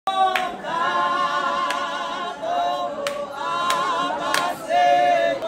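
Hands clap sharply in a steady beat.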